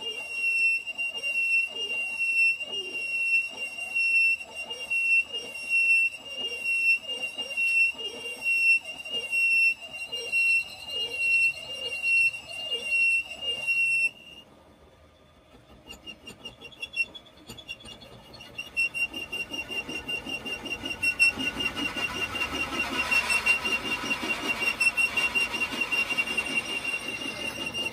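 A metal lathe runs with a steady high whine.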